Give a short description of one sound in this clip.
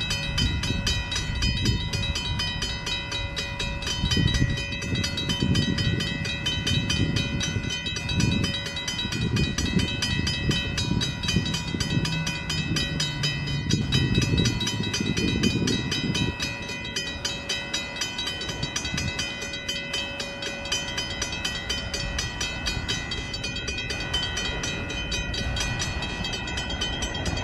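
A train rumbles as it approaches along the tracks.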